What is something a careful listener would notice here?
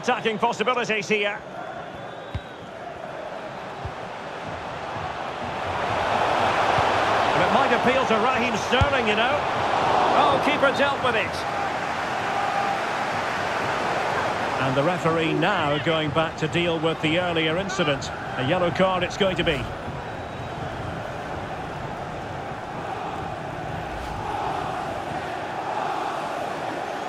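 A large stadium crowd roars steadily, swelling louder for a few seconds.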